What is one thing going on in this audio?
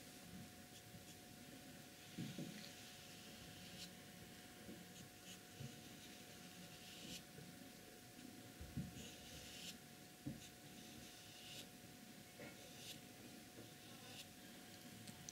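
A brush scratches softly across paper in short strokes.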